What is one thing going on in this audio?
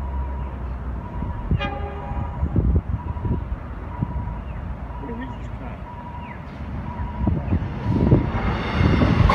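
A level crossing bell rings.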